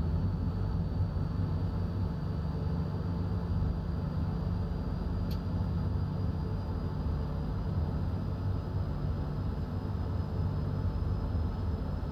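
A train engine rumbles steadily.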